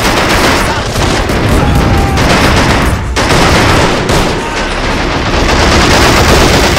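Guns fire in rapid, crackling bursts.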